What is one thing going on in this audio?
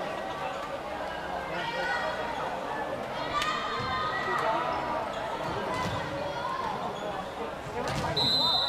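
Girls call out and chatter across a large echoing hall.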